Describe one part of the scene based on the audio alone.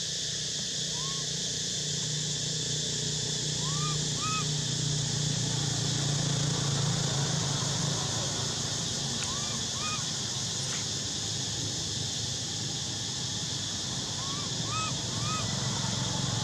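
A baby monkey gives short, high squeaks now and then.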